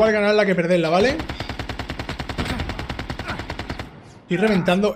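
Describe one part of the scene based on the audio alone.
Rapid gunfire rattles from a game.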